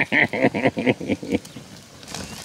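A dog barks rapidly close by.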